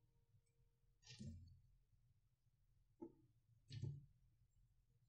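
Plastic parts click and rattle as hands handle a cable plug.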